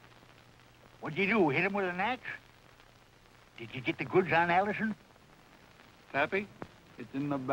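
Men talk in turn close by, with raised, firm voices.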